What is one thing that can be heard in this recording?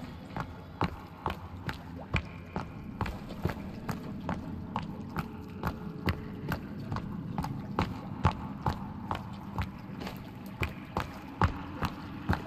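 Footsteps crunch steadily on rocky ground.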